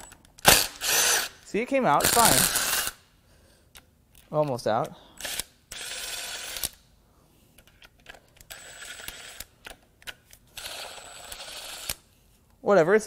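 A cordless impact wrench whirs and rattles in short bursts.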